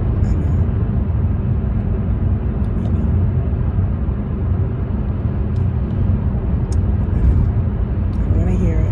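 A car's engine and tyres rumble steadily from inside the car.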